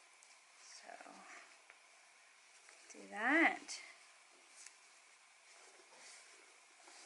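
Fabric rustles softly as hands wrap a strap.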